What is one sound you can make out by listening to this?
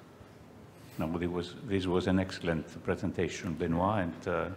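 A man speaks calmly into a microphone, heard through loudspeakers in a large hall.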